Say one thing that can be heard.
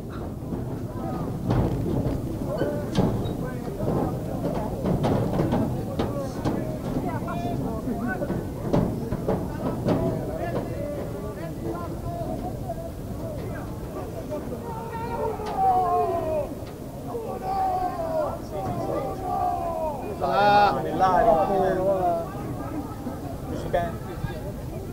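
Several men shout and call out loudly outdoors.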